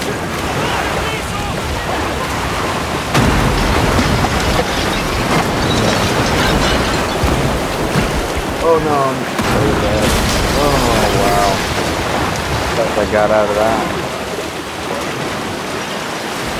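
Fast floodwater rushes and churns loudly.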